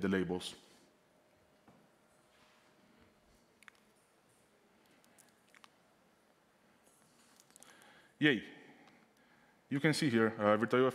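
A man speaks into a microphone in a large room, in short bursts with pauses.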